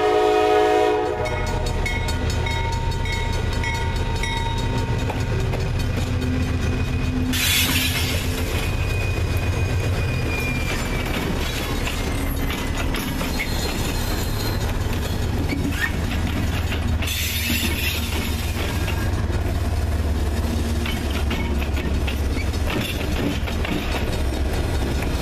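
Train wheels clatter over the rails.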